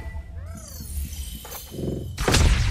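A staff whooshes through the air with a shimmering magical sound.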